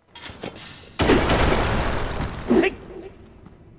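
An explosion bursts with a loud roar and crackle.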